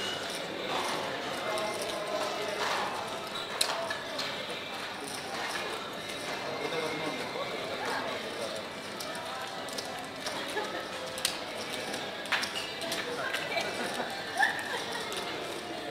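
Casino chips click and clatter as they are gathered and stacked.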